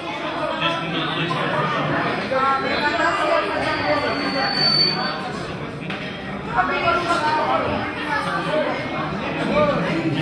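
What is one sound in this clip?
A man speaks loudly through a microphone and loudspeakers in a large echoing hall.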